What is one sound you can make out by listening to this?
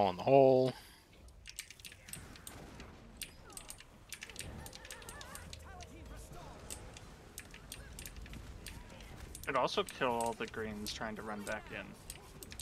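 Game spells crackle and burst in quick, sharp clicks.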